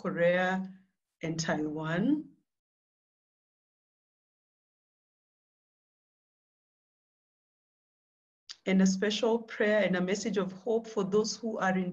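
A young woman speaks calmly over an online call, pausing in between.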